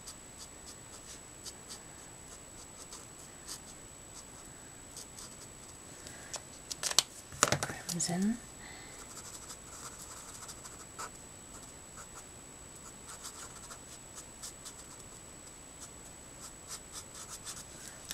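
A marker tip scratches softly across paper.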